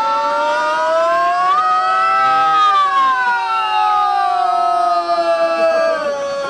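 A man sings into a microphone with a sustained, gliding voice.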